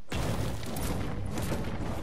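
A pickaxe swings through the air with a whoosh.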